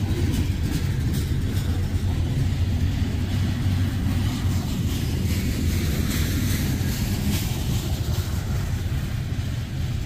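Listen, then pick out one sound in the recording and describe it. Steel wheels clatter rhythmically over rail joints.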